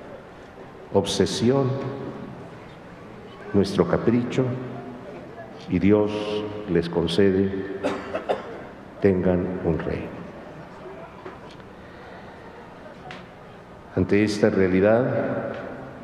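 A middle-aged man speaks calmly and slowly into a microphone, with pauses, in a slightly echoing room.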